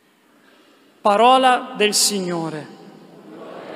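A man chants into a microphone in a large echoing hall.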